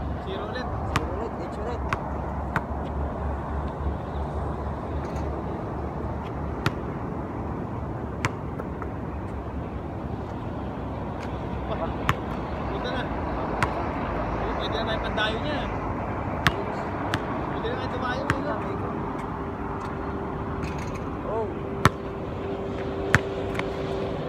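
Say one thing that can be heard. A basketball bounces sharply on a hard court outdoors.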